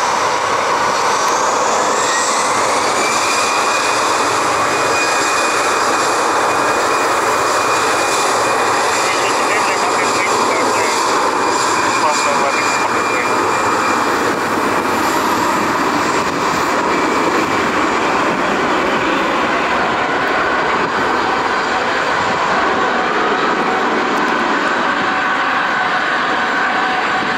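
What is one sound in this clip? Tyres hiss and spray through water on a wet runway.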